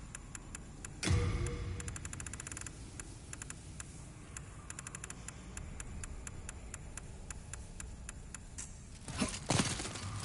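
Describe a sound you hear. A menu clicks in quick ticks.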